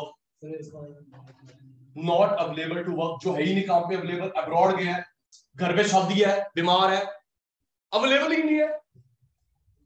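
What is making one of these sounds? A man speaks clearly into a clip-on microphone, explaining at a steady pace.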